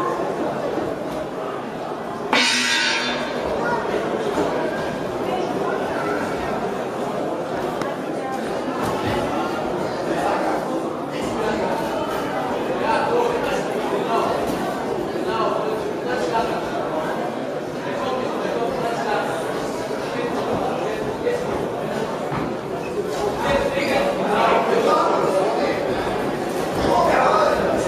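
A crowd of spectators murmurs and calls out in an echoing hall.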